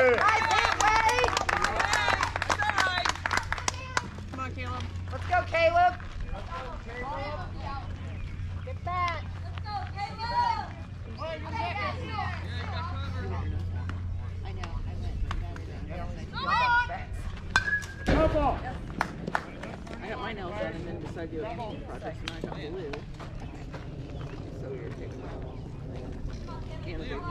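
Young players and spectators call out and chatter across an open field.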